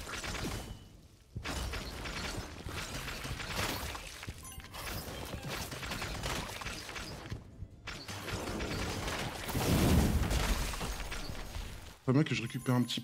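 Rapid electronic shooting and impact sound effects crackle and pop.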